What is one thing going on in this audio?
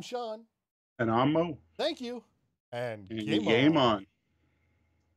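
Another middle-aged man answers with animation over an online call.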